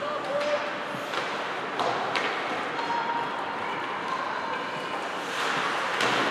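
Ice skates scrape and swish across the ice in a large echoing rink.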